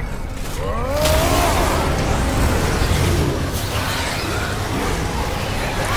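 Icy blasts whoosh and crackle.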